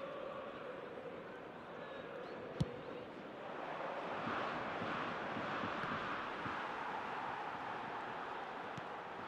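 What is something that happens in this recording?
A large crowd cheers and murmurs steadily, swelling louder partway through.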